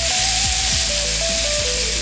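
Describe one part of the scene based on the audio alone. Metal tongs scrape and clink against a pan.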